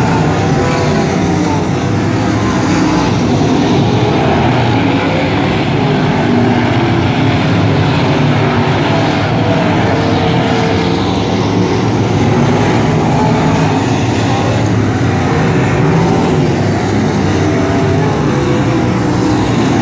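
Race car engines roar loudly outdoors.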